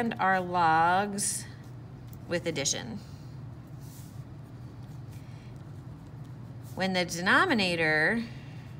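A marker pen squeaks and scratches across paper.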